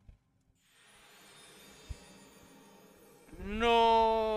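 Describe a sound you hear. A soft magical shimmer sparkles.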